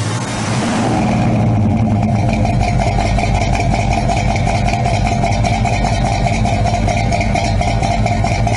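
A car exhaust rumbles loudly and steadily close by.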